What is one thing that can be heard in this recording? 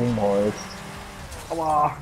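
Cars crash into each other with a metallic bang.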